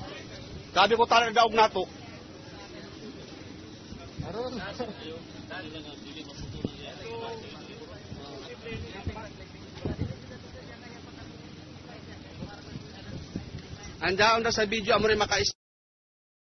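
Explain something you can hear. A crowd of men and women talk and call out outdoors.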